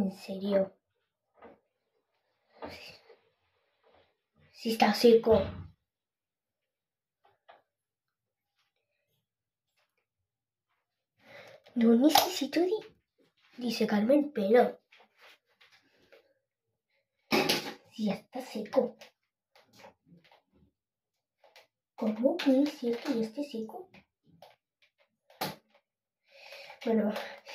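A girl talks close by, in short bursts with pauses.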